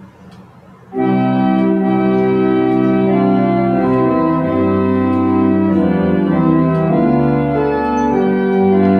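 An organ plays a slow, sustained tune.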